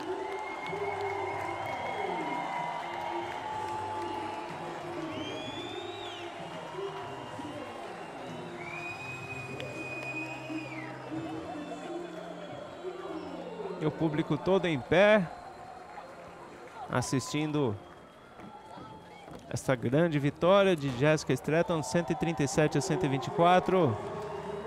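A crowd cheers and applauds outdoors.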